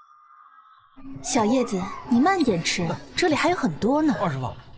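A young woman speaks softly and gently.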